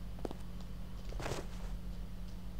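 A body lands with a heavy thud on a wooden floor.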